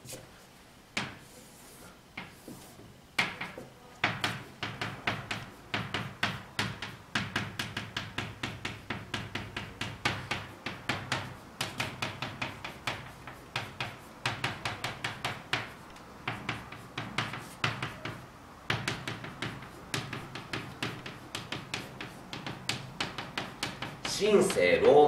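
Chalk taps and scrapes rapidly on a blackboard.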